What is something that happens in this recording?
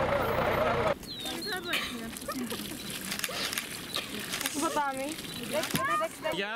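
Water splashes from a bucket onto the soil.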